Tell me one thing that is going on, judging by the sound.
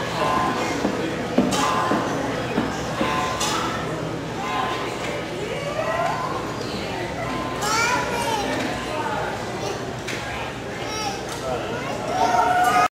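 Music plays through loudspeakers in a large, echoing hall.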